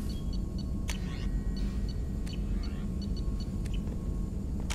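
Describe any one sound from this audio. Menu selection clicks sound sharply a few times.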